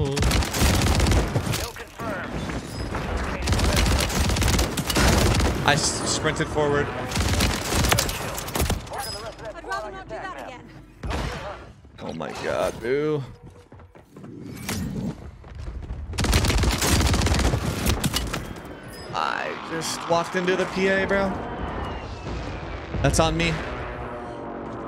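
Automatic shotgun blasts boom in a video game.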